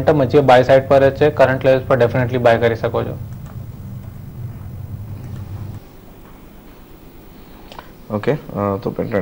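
A young man speaks calmly and steadily into a microphone, pausing now and then.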